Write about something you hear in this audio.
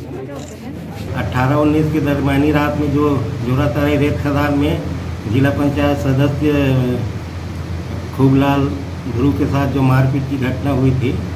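A middle-aged man speaks calmly and steadily into a microphone nearby.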